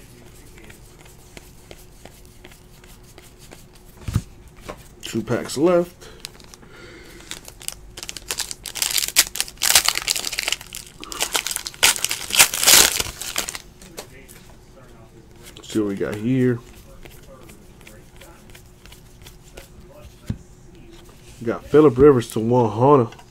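Trading cards flick and slide against each other as they are shuffled.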